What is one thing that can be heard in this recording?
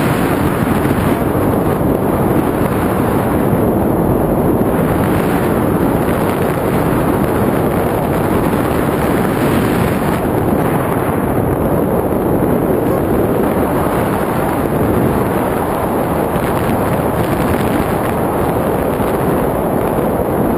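Wind rushes and buffets loudly against a microphone.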